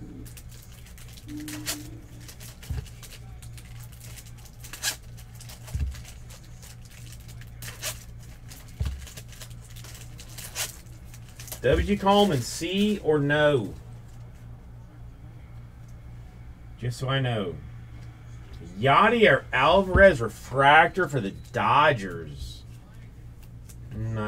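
Trading cards rustle and click as hands sort through them.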